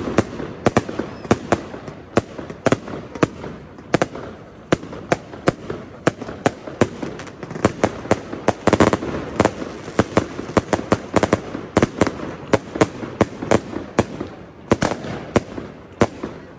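Fireworks bang and crackle rapidly overhead outdoors.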